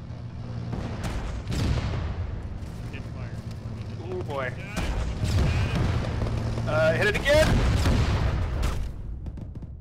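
Heavy explosions boom nearby.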